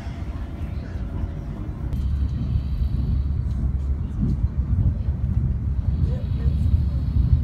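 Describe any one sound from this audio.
A train rumbles along the tracks with a steady low roar.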